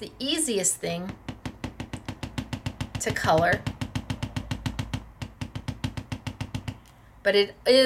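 A paintbrush taps and scrapes quickly in a plastic palette.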